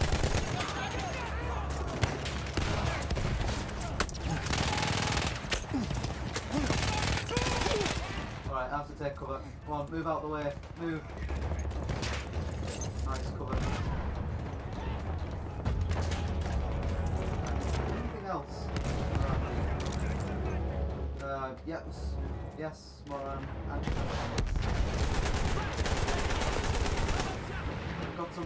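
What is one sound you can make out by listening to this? Gunfire cracks in sharp bursts.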